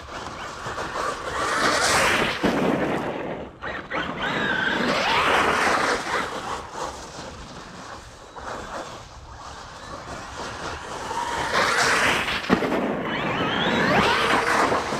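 A small electric motor whines loudly as a toy car races close by, then fades.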